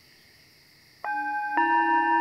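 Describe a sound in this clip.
A metal singing bowl is struck and rings with a clear, lingering tone.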